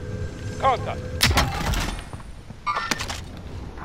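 An item is picked up with a short clatter.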